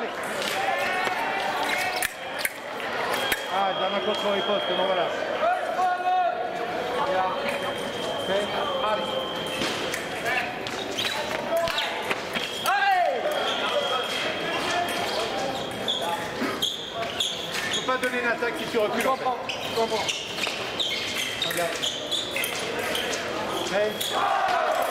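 Fencers' shoes thump and squeak on the floor.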